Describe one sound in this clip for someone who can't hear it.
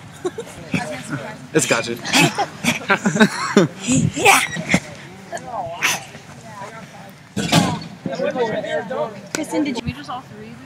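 A young woman talks and laughs with animation close by, outdoors.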